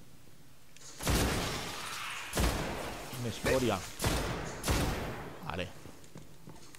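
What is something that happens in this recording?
Game gunfire sounds in loud bursts.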